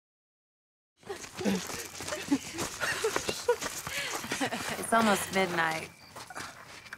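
A young woman screams in panic.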